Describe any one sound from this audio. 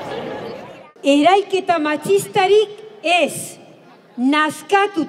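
A woman speaks loudly and firmly.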